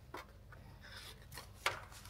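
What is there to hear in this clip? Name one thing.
A paper card slides into a rack.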